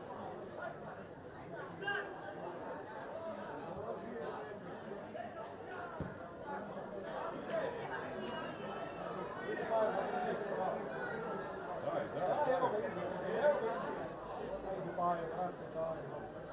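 A sparse crowd murmurs far off in an open-air stadium.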